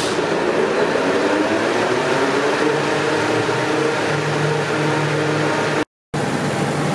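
A textile machine whirs and rattles steadily.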